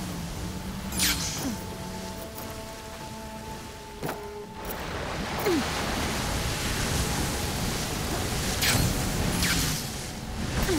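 A climber's gear rustles and thumps in quick swooshes.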